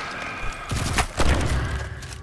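An explosion bursts with a crackling blast.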